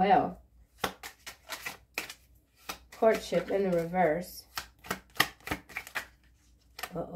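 Playing cards are shuffled with quick riffling clicks.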